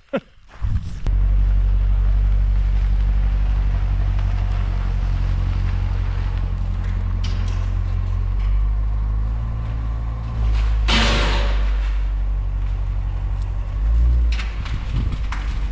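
A sports car engine rumbles deeply as the car creeps forward.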